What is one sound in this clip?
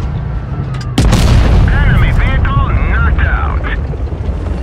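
A loud explosion booms and rumbles on.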